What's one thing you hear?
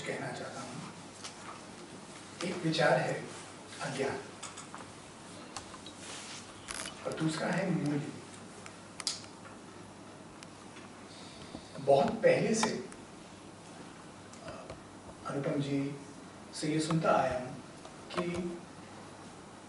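A man speaks into a microphone with pauses, heard through loudspeakers in a large echoing hall.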